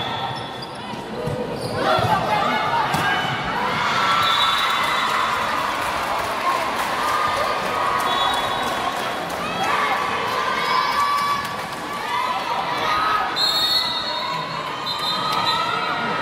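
A crowd of spectators cheers and chatters loudly in a large echoing hall.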